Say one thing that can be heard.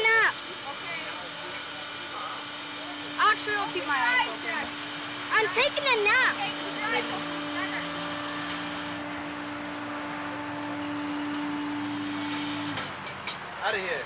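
A boy talks excitedly close by.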